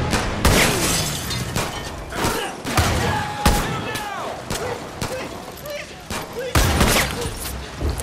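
Gunshots crack in rapid bursts, echoing outdoors.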